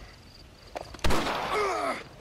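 A gunshot cracks loudly.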